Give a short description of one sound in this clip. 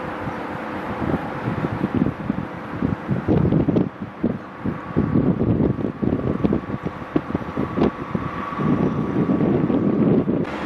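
Steel wheels clatter and squeal over rail joints and points.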